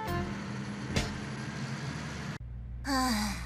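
A bus engine rumbles along a road.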